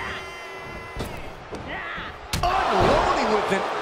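A body slams onto a ring mat with a heavy thud.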